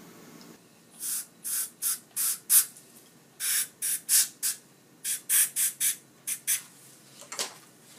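A dental air syringe hisses in short bursts.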